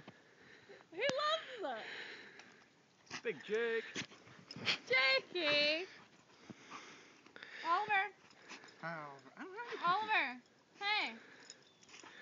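Dogs whine and yelp excitedly.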